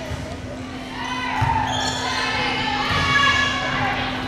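A crowd in an echoing gym cheers and shouts.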